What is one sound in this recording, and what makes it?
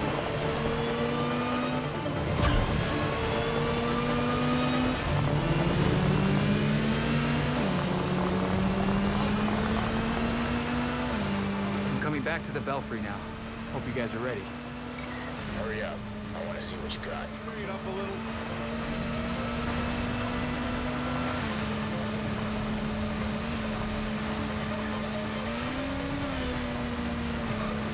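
A motorcycle engine hums and roars steadily, its pitch stepping up and down.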